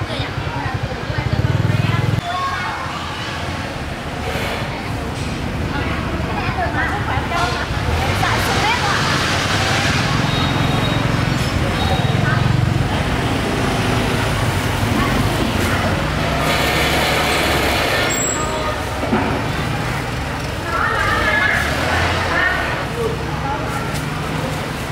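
Young women talk with each other nearby.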